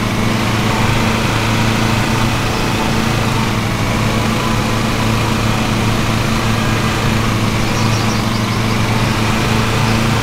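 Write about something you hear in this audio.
A riding lawn mower engine drones steadily.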